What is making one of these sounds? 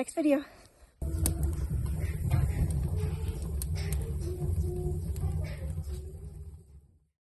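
A wood fire crackles and roars in a stove.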